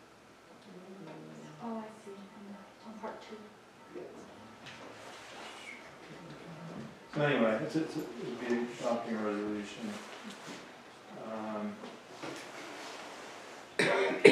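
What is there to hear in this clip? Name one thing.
A man speaks calmly to a room, heard from across a hall with some echo.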